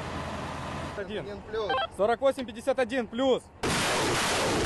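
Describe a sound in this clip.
A young man speaks over a handheld radio.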